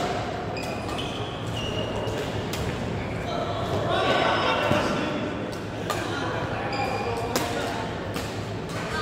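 Rackets sharply strike a shuttlecock back and forth in a large echoing hall.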